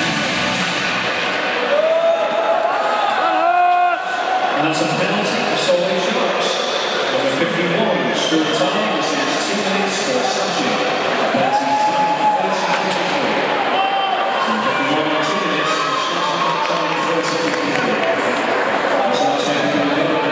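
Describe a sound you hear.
Ice skates scrape and hiss across an ice rink.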